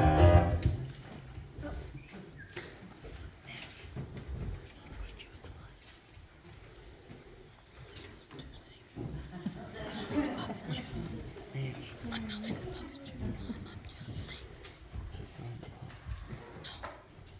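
An audience murmurs quietly in a large room.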